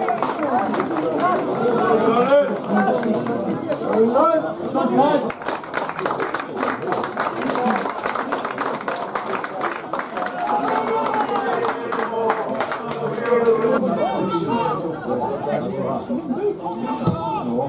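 Adult men chat and call out nearby, outdoors.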